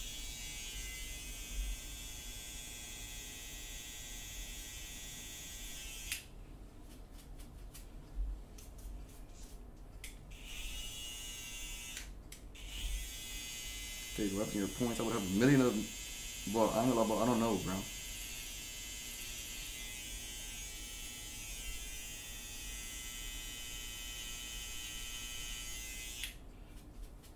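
Electric hair clippers buzz steadily, stopping and starting.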